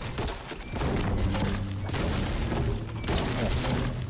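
A pickaxe chops into a tree trunk with hard knocks.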